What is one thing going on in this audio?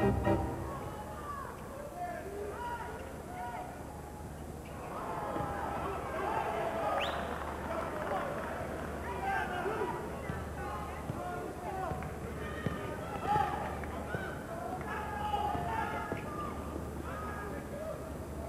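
A crowd murmurs and cheers in a large echoing arena.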